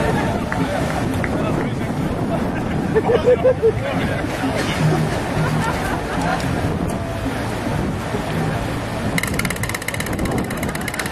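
A crowd murmurs in the open air.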